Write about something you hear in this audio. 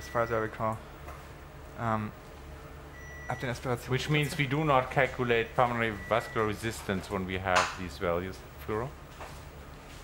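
A man speaks calmly, heard through a microphone.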